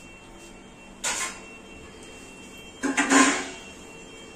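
Metal pots clatter on a stove.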